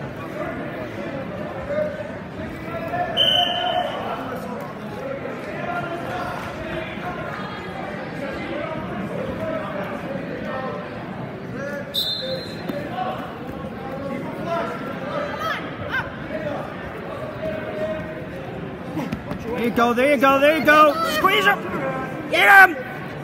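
A crowd of spectators murmurs and chatters in a large echoing gym.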